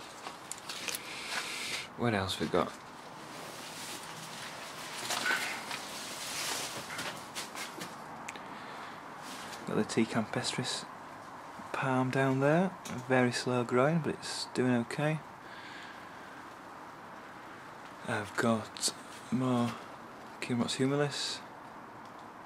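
Stiff palm leaves rustle as they brush past up close.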